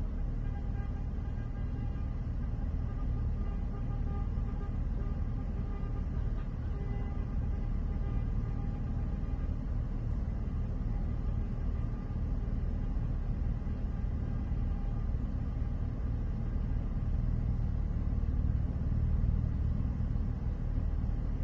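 A vehicle engine idles with a low rumble, heard from inside the vehicle.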